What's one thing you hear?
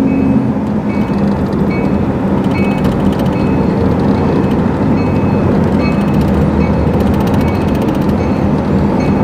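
Road noise and wind roar past an open car window.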